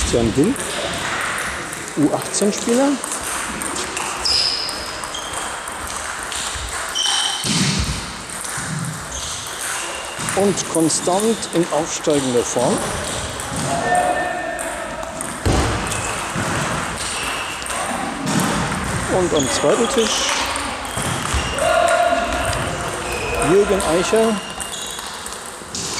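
A table tennis ball clicks back and forth on paddles and a table in an echoing hall.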